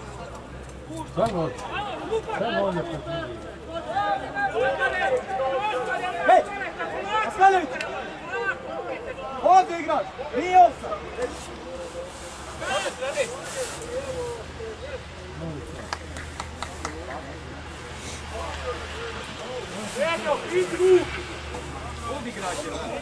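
Men shout and call out to each other outdoors at a distance.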